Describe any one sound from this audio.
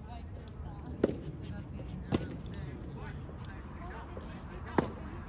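Tennis balls are struck sharply with rackets outdoors.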